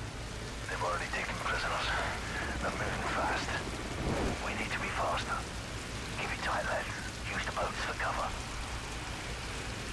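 Water sloshes and splashes as swimmers move through it.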